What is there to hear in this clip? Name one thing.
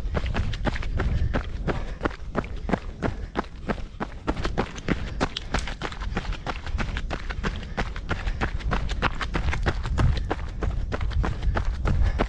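Running shoes crunch on a gravel trail in a quick, steady rhythm.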